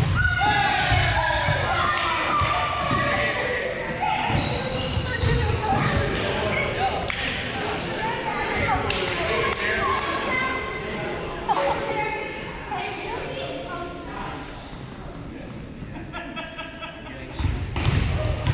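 Young men and women talk and call out to each other in a large echoing gym.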